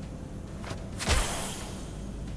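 A sharp blast bursts out once.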